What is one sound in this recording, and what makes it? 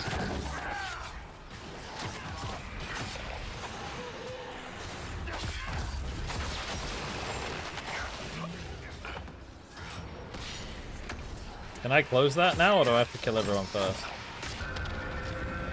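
Magic blasts crackle and boom during a fight.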